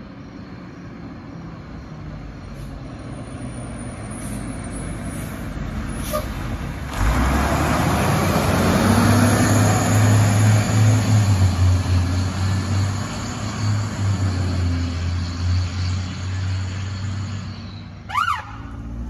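A fire engine's motor rumbles loudly as it drives past.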